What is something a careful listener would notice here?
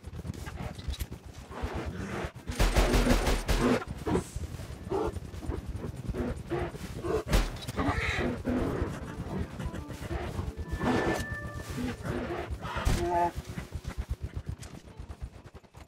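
A horse gallops with quick, steady hoofbeats on soft ground.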